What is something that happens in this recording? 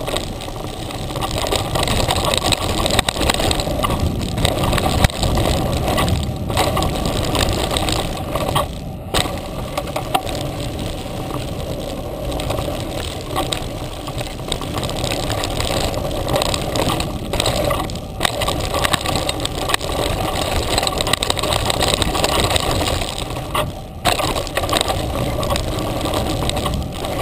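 Bicycle tyres roll and crunch over a rough dirt trail.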